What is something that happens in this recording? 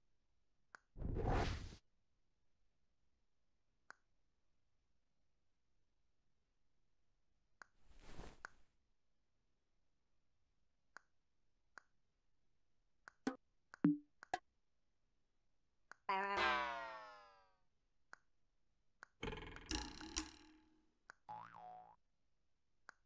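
Short electronic sound effects play one after another.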